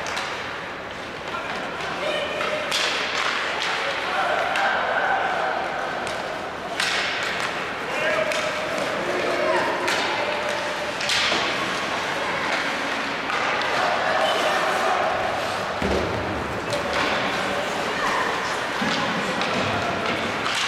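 Skates scrape and carve across ice in a large echoing arena.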